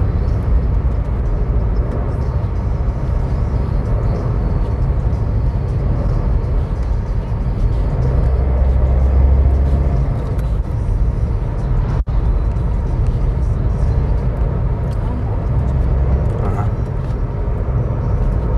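A car's engine hums steadily as the car drives along a road.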